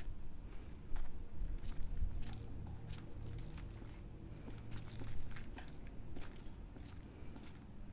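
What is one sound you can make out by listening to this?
Footsteps creak slowly.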